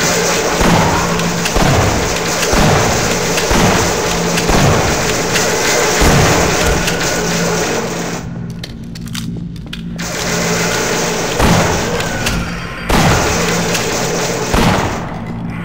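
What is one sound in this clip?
A pump shotgun fires heavy booming shots.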